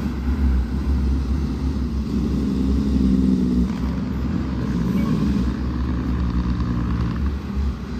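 A car's engine hums as it passes by.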